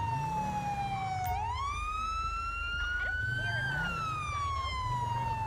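A police siren wails, its pitch sliding down and then up.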